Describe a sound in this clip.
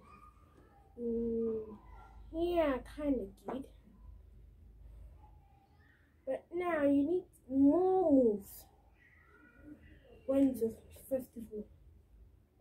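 A boy speaks and sings with animation close by.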